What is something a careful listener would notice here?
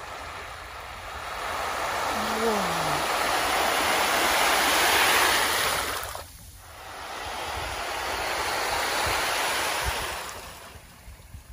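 Countless small fish churn the water's surface with a loud fizzing, splashing hiss that swells and then fades.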